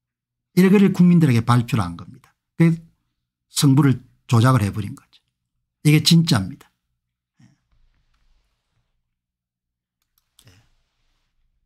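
A middle-aged man speaks calmly and closely into a microphone, in short bursts with pauses.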